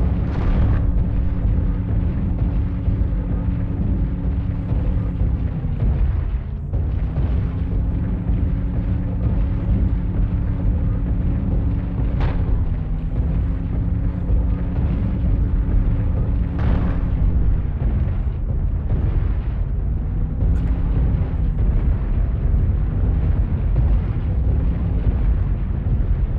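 A large machine's engine hums steadily, its pitch dipping now and then.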